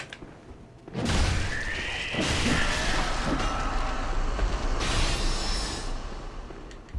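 Game combat sounds burst with heavy thuds and whooshes.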